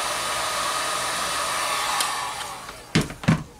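A heat gun blows hot air with a steady rushing whir.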